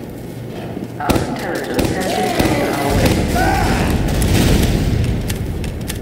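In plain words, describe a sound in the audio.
A heavy gun spins and fires in rapid bursts.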